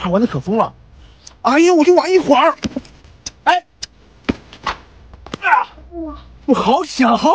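A young man speaks loudly with animation close by.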